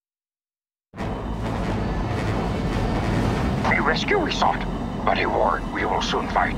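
Spacecraft engines roar loudly as they fly past.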